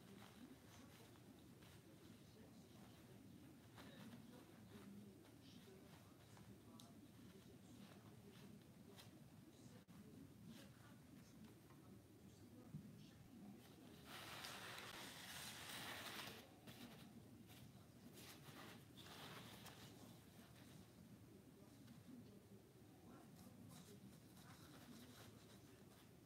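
Cardboard pieces rustle and scrape as they are handled.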